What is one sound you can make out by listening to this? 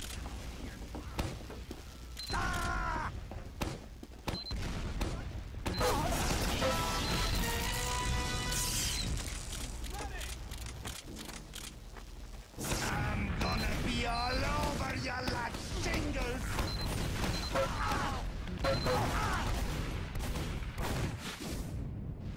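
Gunfire from a game weapon bursts in rapid rounds.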